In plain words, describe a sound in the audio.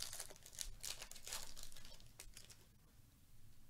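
Cards slide and rustle against each other.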